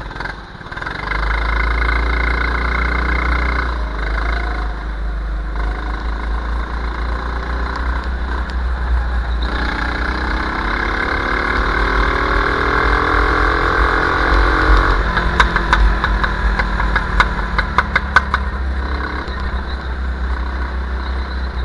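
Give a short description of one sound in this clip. A go-kart's small engine revs up and down as it speeds along a wet track.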